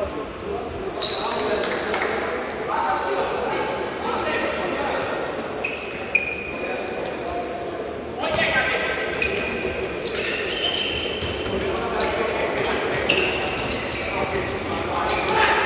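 A futsal ball is kicked with sharp thuds in a large echoing hall.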